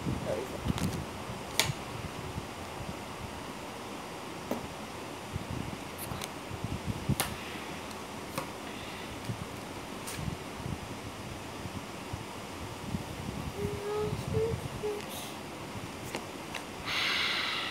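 A boy speaks calmly close by.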